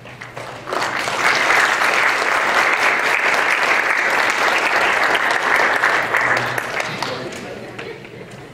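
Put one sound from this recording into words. An audience applauds, then the clapping dies away.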